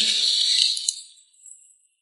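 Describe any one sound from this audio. Paper crumples in a hand.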